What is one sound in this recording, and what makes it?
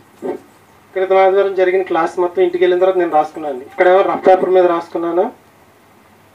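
A man speaks loudly and with animation through a microphone and loudspeaker.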